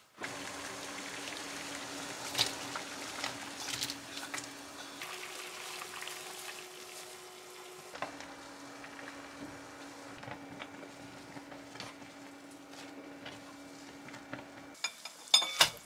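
Water bubbles at a rolling boil in a pot.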